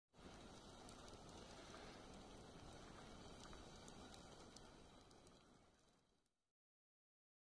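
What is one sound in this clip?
Burning wood crackles and pops.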